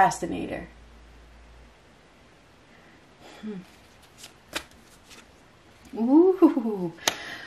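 Playing cards slide and tap softly on a cloth-covered table.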